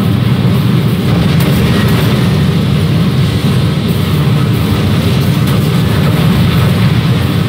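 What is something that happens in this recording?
Explosions boom and crackle repeatedly.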